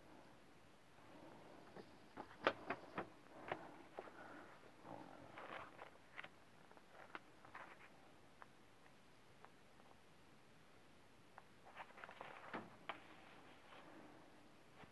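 Book pages rustle and flip.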